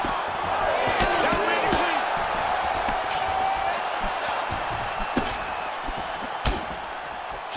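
Punches land with sharp, heavy thuds.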